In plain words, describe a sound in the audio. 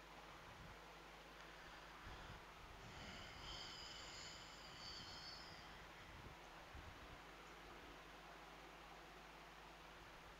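An eraser wipes across a whiteboard.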